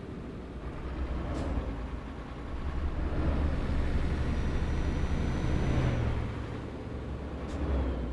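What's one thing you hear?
A car passes by in the opposite direction.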